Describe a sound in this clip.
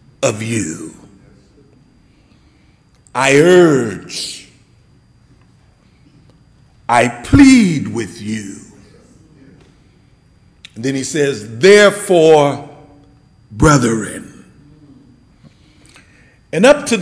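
A middle-aged man preaches with emphasis through a microphone, in short bursts with pauses.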